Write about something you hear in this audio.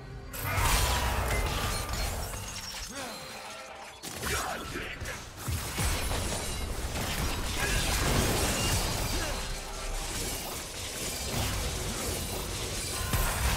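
Game spells crackle and blast as characters fight.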